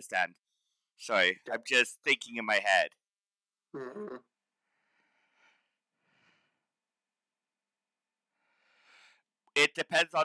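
A middle-aged man talks calmly into a close microphone, in short bursts.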